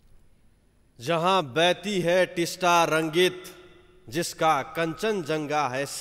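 A young man speaks with animation into a microphone, heard over loudspeakers in a large hall.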